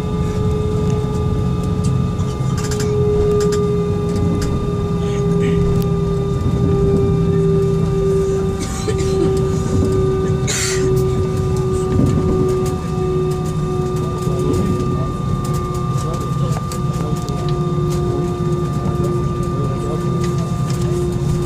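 An aircraft rumbles as it rolls over the ground.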